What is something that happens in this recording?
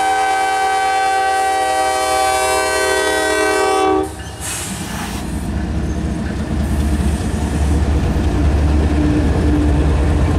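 Locomotive engines rumble past close by.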